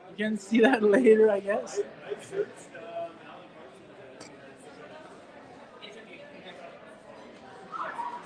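Several people chat quietly in the background of a room.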